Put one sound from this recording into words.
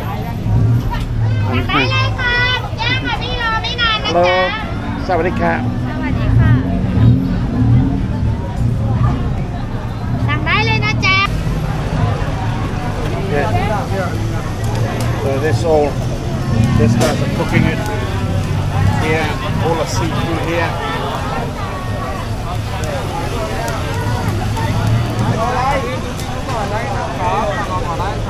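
A crowd chatters in the background of a busy street.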